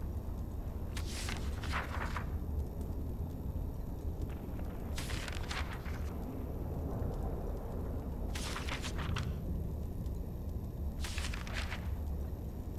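Paper pages rustle as they are turned, again and again.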